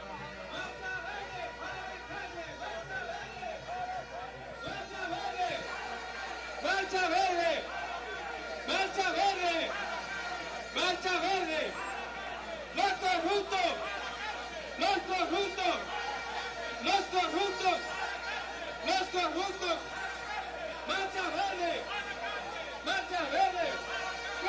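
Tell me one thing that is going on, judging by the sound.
A large crowd chants loudly in rhythm outdoors.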